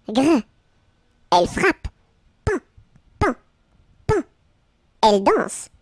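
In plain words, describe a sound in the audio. A high, childlike cartoon voice speaks playfully in short bursts, close to the microphone.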